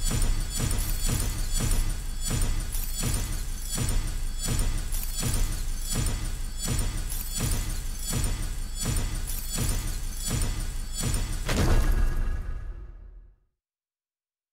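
Game music thumps with a steady rapid beat, then fades out.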